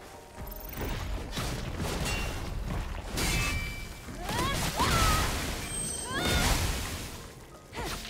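Heavy blows crash and thud in quick bursts.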